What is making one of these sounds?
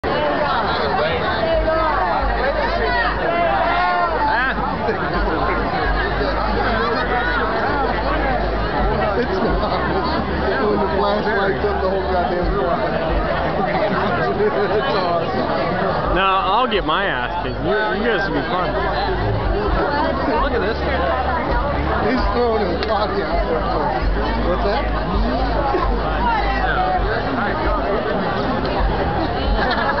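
A large crowd of men and women talks and chatters loudly outdoors.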